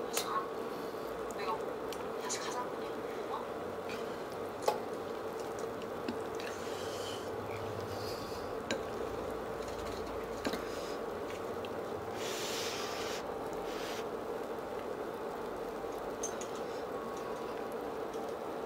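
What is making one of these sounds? A hot pot simmers and bubbles steadily.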